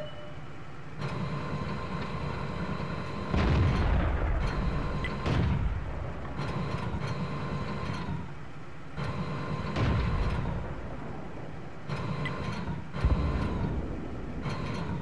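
A tank engine rumbles and roars.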